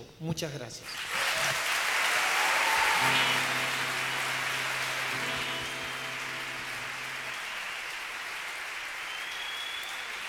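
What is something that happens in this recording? A rock band plays loudly with electric guitars, bass, drums and keyboard.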